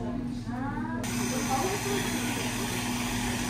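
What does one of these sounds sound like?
Whipped cream sprays from a can.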